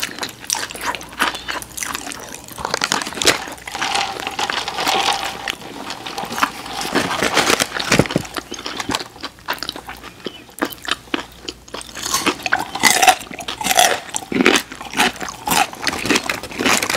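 A man chews food close to a microphone with wet, smacking sounds.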